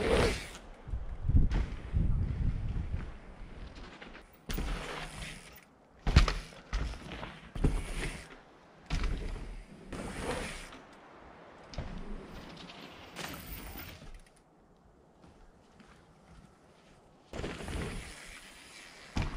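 A hardtail mountain bike lands a jump with a thud.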